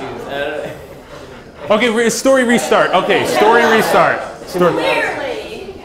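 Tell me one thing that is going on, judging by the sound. A small group of men laughs.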